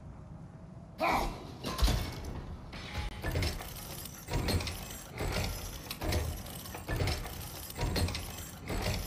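A heavy chain rattles and clanks as it is pulled.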